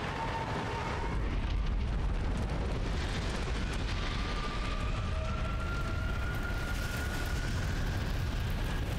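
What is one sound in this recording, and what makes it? A deep rumble swells as fire bursts up.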